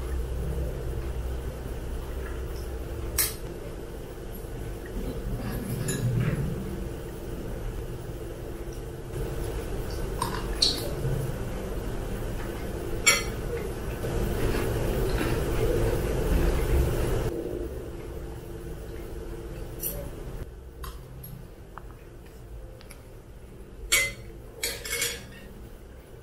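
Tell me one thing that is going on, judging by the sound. Chopsticks clink against a bowl.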